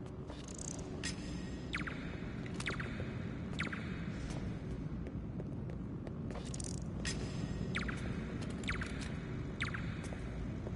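Soft footsteps pad across a stone floor.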